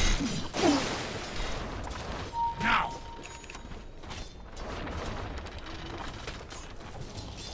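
Video game spell effects and weapon hits clash in a battle.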